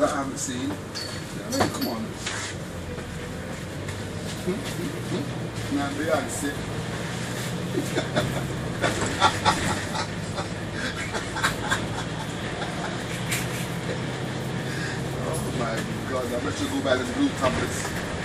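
A bus rattles and clatters as it drives over the road.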